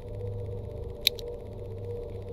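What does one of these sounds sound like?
A short game click sounds.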